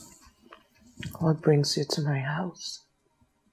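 A woman murmurs softly, close by.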